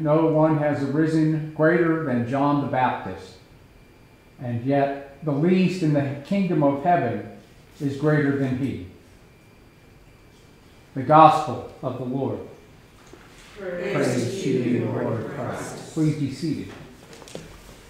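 An elderly man reads aloud calmly into a microphone in an echoing room.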